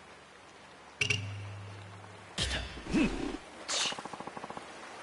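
Water splashes and churns nearby.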